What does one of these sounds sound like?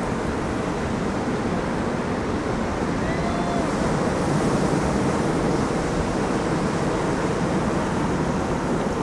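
Waves crash and roll onto a beach in a steady roar.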